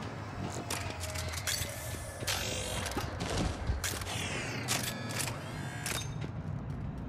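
Gunshots crack in rapid bursts with metallic ringing.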